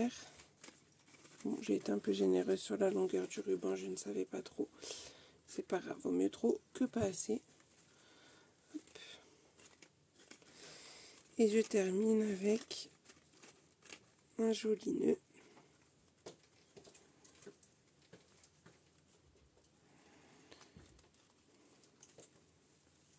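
Paper and ribbon rustle softly as they are handled.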